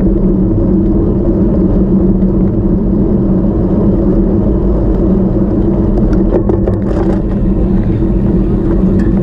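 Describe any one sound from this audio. An engine hums steadily while driving along a road.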